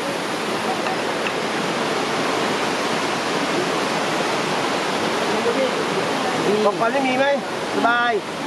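A stream trickles and splashes over rocks.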